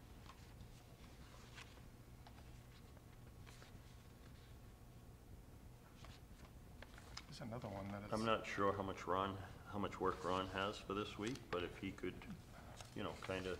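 Paper rustles as a man handles documents.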